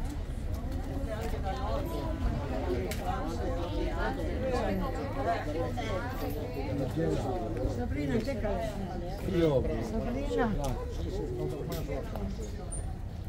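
Elderly people chatter nearby in a crowd outdoors.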